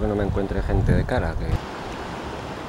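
A man speaks close to the microphone.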